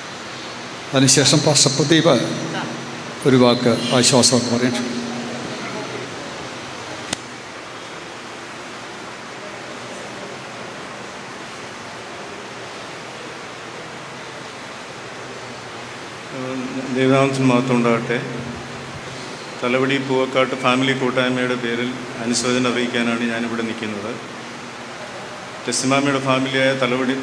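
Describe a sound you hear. A man speaks slowly through a microphone in an echoing hall.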